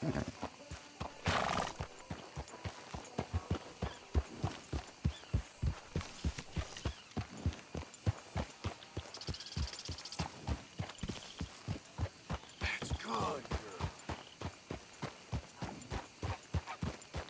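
A horse's hooves thud steadily on soft ground at a trot.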